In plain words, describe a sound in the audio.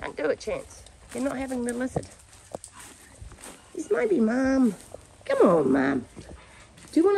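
A dog whines and yelps close by.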